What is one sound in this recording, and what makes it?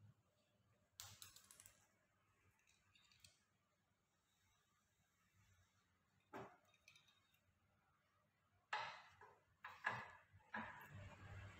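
Metal parts clink and rattle as a pedal is handled and fitted.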